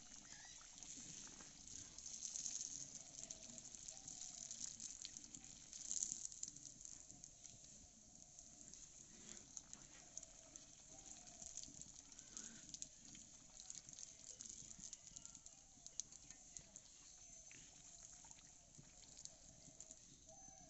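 A metal skimmer scrapes and taps against an iron pan.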